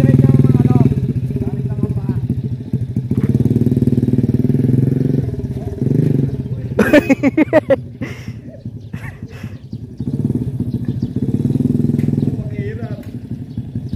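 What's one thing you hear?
A small motorcycle engine putters and revs, rising and falling as it circles.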